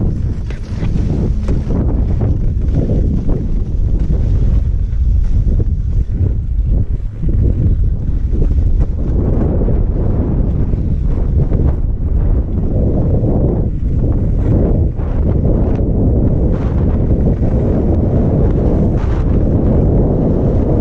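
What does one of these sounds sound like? Wind buffets loudly against the microphone, growing stronger with speed.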